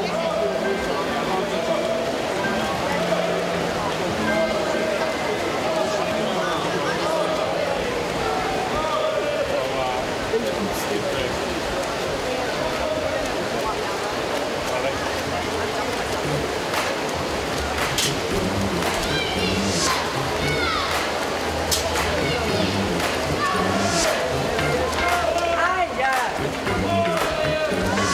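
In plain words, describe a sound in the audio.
Swimmers splash rhythmically through the water.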